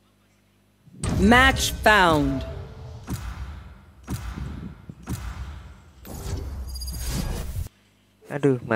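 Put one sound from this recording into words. A game alert chimes and whooshes loudly.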